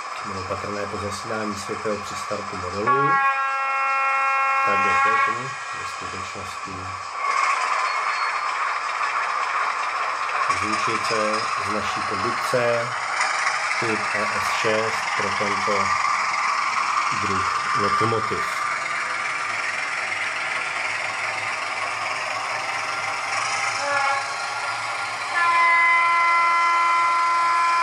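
A small model train motor hums as the locomotive rolls along the track.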